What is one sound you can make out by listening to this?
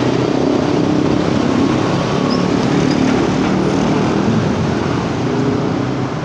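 A motorcycle engine drones as it passes.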